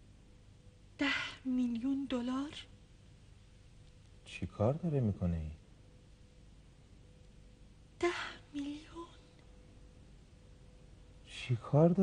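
A young woman reads aloud calmly.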